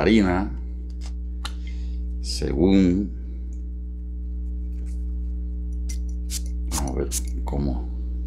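A perfume atomizer sprays several quick hisses.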